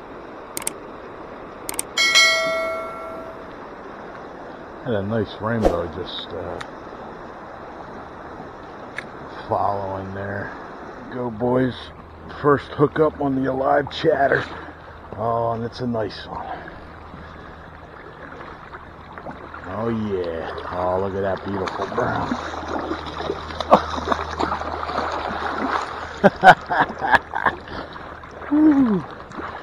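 A shallow stream flows and ripples steadily.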